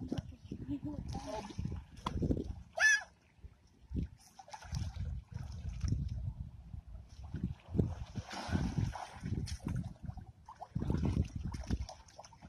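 Water splashes as children wade and swim in shallow water.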